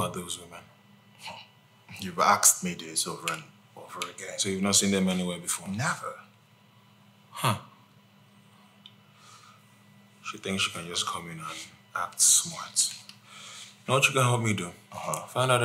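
A second man answers in a deep voice, close by.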